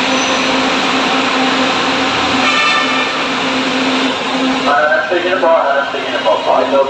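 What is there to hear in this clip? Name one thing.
A train hums steadily.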